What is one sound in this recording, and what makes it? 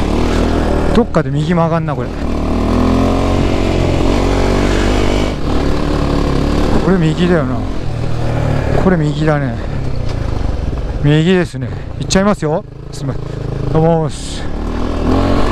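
A motorcycle engine revs up and down with rising and falling pitch.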